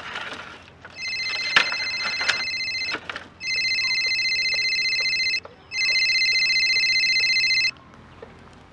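A mobile phone rings with a repeating electronic tone.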